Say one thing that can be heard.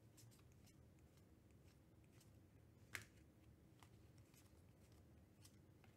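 Cards flick and slide against each other as they are shuffled by hand.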